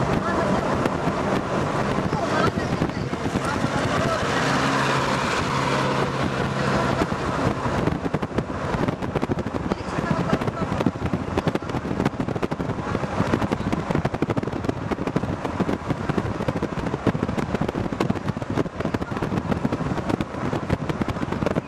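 A vehicle's engine rumbles steadily while driving along a road.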